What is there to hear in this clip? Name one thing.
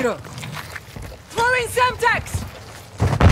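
Footsteps run over concrete.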